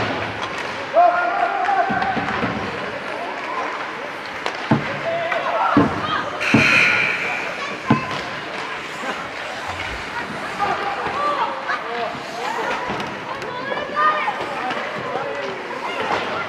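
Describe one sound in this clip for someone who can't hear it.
Young children call out to each other across the ice.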